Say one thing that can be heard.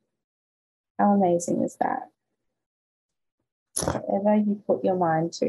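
A young woman speaks calmly and closely into a microphone, in short phrases with pauses.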